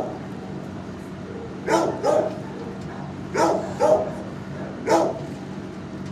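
A dog laps water from a bowl close by.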